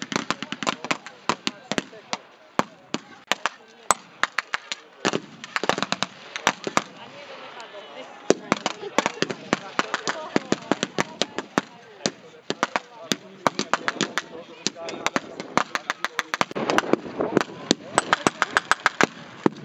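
Rifle shots crack rapidly, near and far.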